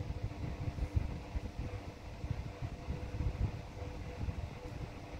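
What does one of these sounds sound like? An electric fan hums steadily close by.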